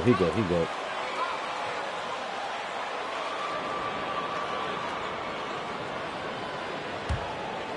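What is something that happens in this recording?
An arena crowd murmurs steadily.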